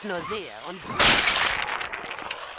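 Toy blocks tumble and clatter.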